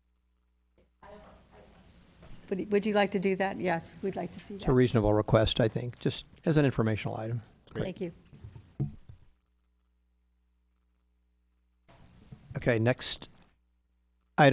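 An adult speaks calmly through a microphone in a large room.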